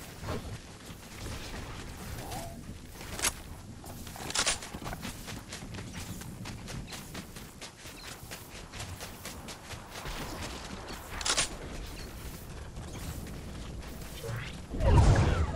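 Footsteps crunch on snow in quick succession.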